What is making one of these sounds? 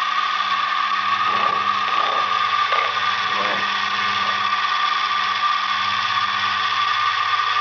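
A metal cutter grinds into metal.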